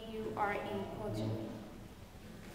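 A girl speaks into a microphone.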